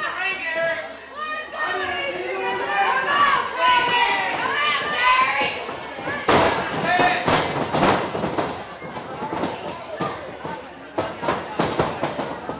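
A crowd chants and cheers in a large hall.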